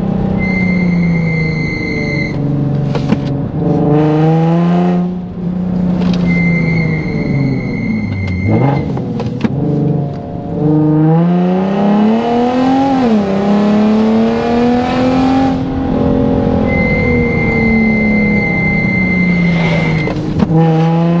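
A car engine roars loudly, revving up and dropping back again and again as it shifts gears.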